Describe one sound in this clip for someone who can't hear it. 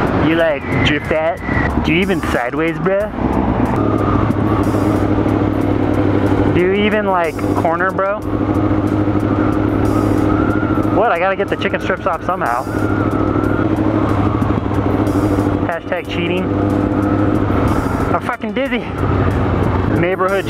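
A motorcycle engine hums steadily at speed, rising and falling with the throttle.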